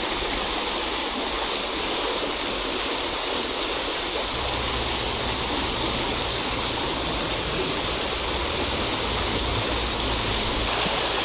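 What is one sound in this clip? A stream rushes and splashes over stones.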